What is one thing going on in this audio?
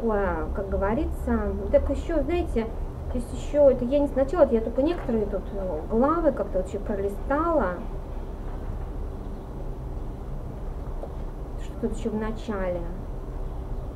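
A woman reads aloud calmly, close by.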